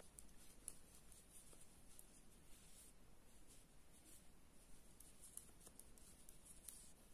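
Knitting needles click and tap softly against each other close by.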